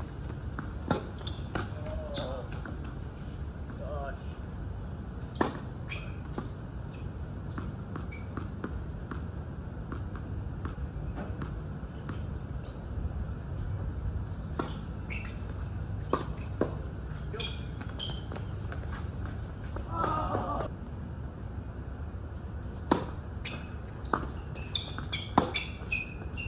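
Tennis rackets hit a ball back and forth with sharp pops.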